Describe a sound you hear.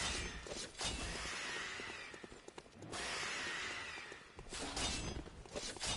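A blade whooshes through the air and strikes.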